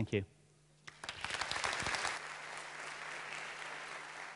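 An audience applauds.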